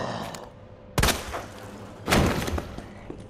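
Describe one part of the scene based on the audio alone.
A pistol fires two loud shots.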